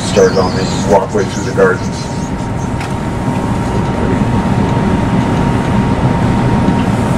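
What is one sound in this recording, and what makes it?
A bus engine rumbles steadily while driving along a road.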